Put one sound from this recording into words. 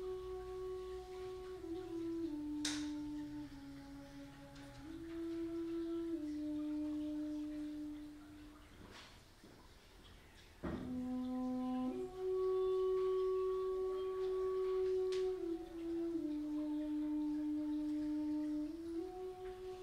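A man plays a slow, breathy melody on a wooden flute through a microphone, pausing briefly midway.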